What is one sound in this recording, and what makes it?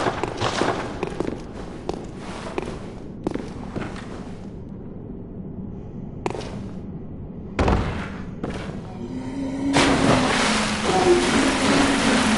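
Footsteps thud on wet stone.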